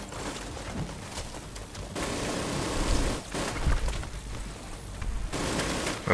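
Rifle gunfire rattles in short bursts.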